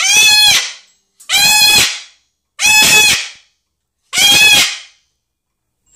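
A cockatoo screeches loudly, over and over.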